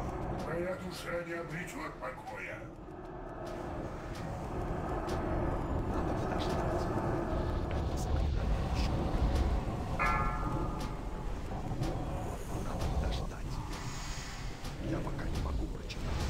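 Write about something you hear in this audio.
Magic spells crackle and boom in a game battle.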